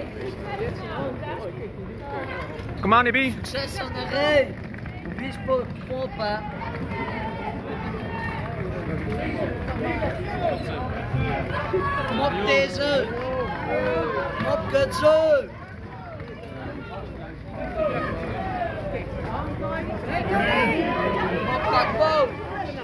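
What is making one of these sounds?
A crowd of fans chatters and calls out nearby, outdoors.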